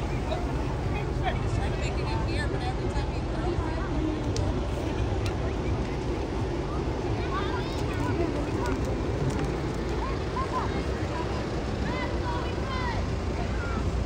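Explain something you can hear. A car engine hums as a convertible rolls slowly past.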